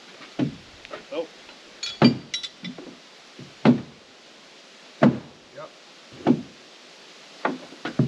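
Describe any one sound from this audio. A hammer bangs on wooden framing with ringing knocks outdoors.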